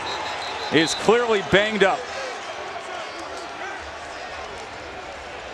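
A large crowd murmurs and cheers outdoors in a stadium.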